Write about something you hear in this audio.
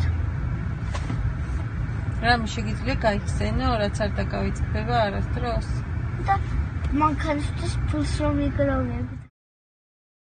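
A boy talks and laughs close by.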